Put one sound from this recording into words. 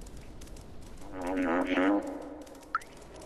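A cat meows loudly.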